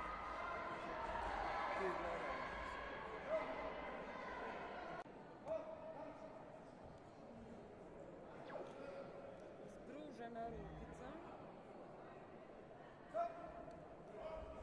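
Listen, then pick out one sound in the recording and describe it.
A crowd chatters and murmurs in a large echoing hall.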